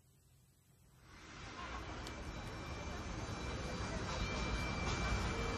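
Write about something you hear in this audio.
A piano plays chords.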